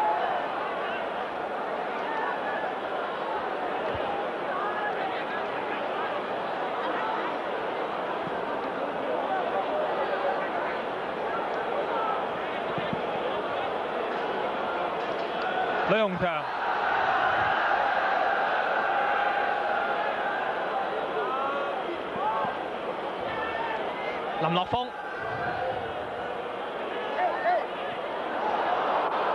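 A large stadium crowd roars and murmurs.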